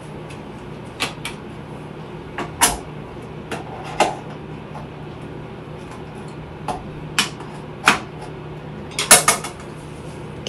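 Small objects click and tap against a counter.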